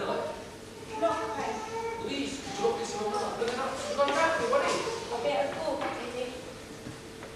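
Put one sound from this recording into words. A young woman speaks on a stage in a large hall.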